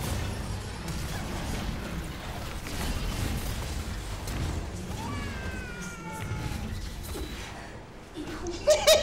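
Game sound effects of spells and hits play.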